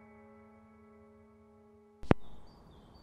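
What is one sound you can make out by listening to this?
A record plays a steady droning tone.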